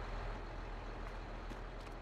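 A tractor engine idles with a low, steady hum.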